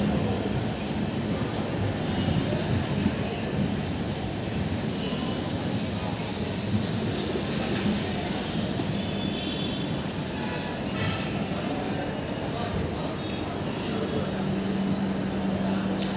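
A parked train hums steadily nearby.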